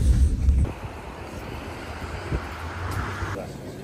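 Footsteps pass along a pavement outdoors.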